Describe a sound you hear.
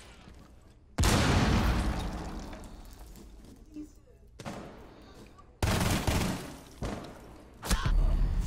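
Gunfire bursts out in short loud volleys.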